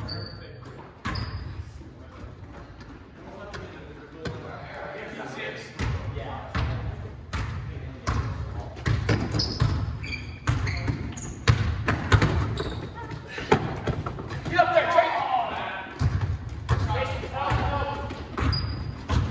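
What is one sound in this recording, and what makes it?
Basketballs bounce on a wooden floor, echoing in a large hall.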